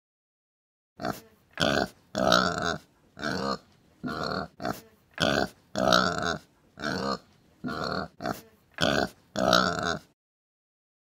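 Pigs grunt.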